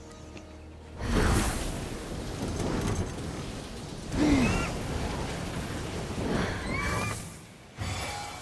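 Wind rushes past in loud, swelling whooshes.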